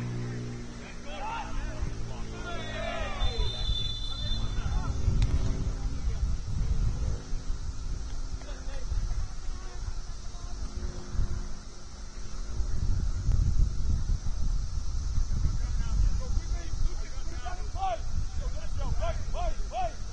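Players shout to each other far off across an open field.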